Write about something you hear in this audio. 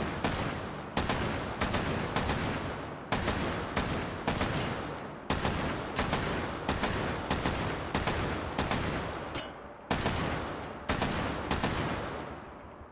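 A machine gun fires in short bursts of loud shots that ring out and echo.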